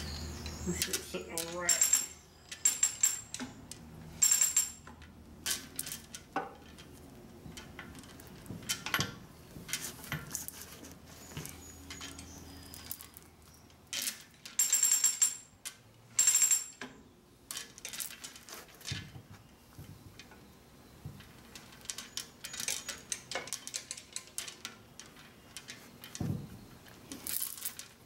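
A heavy chain rattles and clanks against metal.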